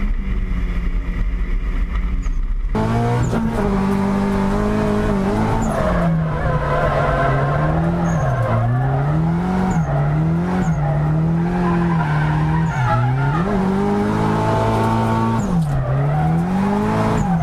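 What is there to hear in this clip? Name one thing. A car engine roars loudly, its revs rising and falling again and again.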